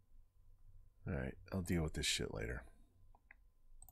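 A man speaks briefly and casually into a close microphone.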